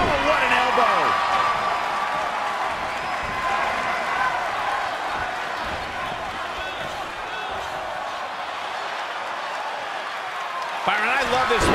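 An arena crowd cheers and roars.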